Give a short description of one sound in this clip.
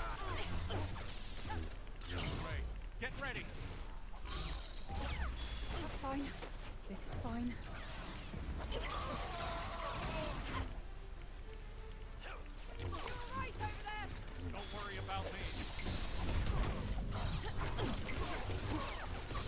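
Fire roars with a deep rumble.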